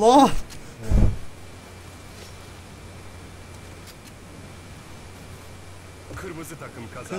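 A young man talks and laughs close to a microphone.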